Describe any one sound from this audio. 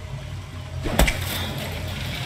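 A wet object smacks hard against a metal target.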